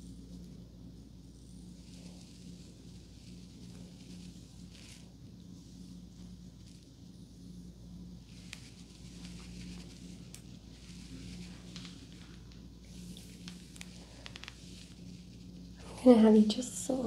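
A comb brushes softly through hair close by.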